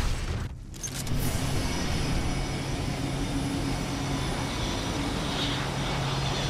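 A low engine hums steadily.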